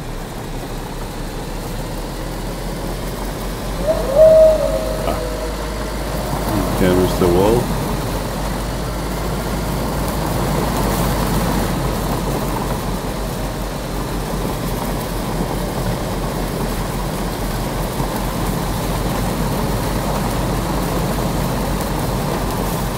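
Tyres rumble over grass and bumps.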